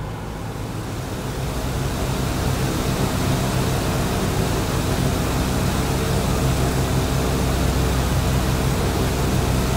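Propeller engines roar loudly outside the plane.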